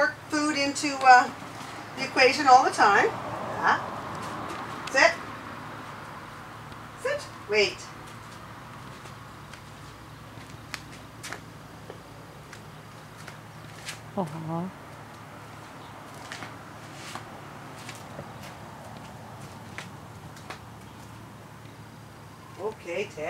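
A woman speaks commands close by in a lively, high voice.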